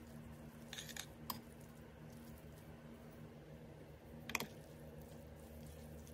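Chopsticks toss noodles with soft clicks.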